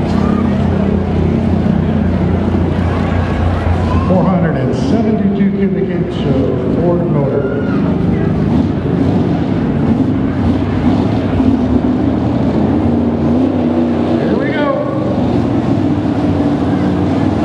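A truck engine roars loudly and steadily, revving as the truck pulls a heavy sled.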